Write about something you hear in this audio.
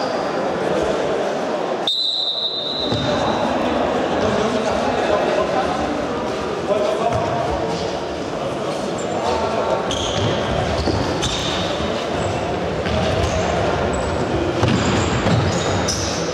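A ball is kicked with dull thuds in a large echoing hall.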